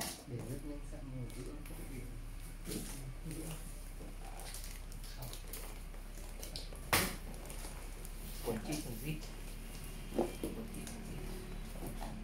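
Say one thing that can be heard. Cardboard boxes scrape and thump as they are moved.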